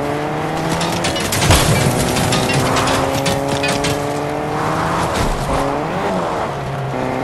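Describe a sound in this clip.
A car bumps and thuds over rough ground.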